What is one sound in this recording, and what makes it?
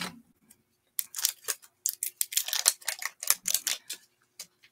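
A small paint bottle rattles as it is shaken.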